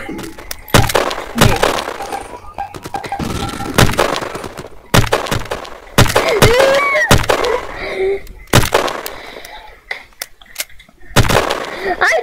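Sniper rifle shots crack loudly, one after another.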